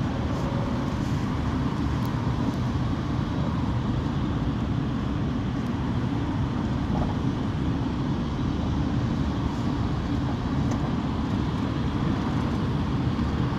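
A car engine hums steadily from inside a moving vehicle.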